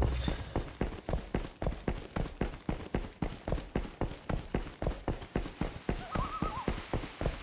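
Quick footsteps thud steadily on a hard floor and stairs.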